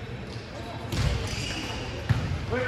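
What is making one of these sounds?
A volleyball is struck with loud thuds.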